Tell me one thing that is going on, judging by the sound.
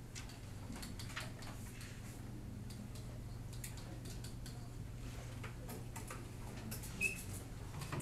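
A stylus taps and scrapes lightly on a tablet.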